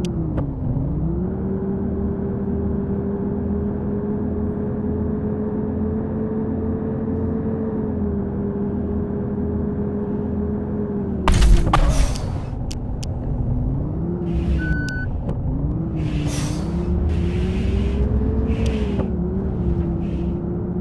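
A bus engine drones under way, its pitch rising and dropping with gear changes.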